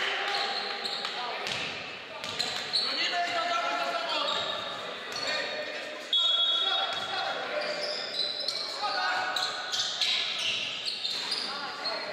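Basketball shoes squeak sharply on a hardwood floor in an echoing hall.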